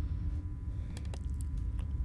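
A rifle's metal parts click as it is handled.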